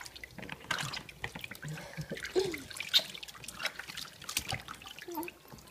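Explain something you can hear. Water splashes and drips in a small tub.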